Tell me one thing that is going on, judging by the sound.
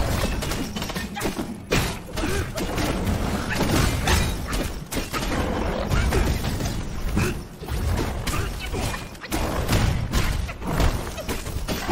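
Heavy blows thud and crash repeatedly.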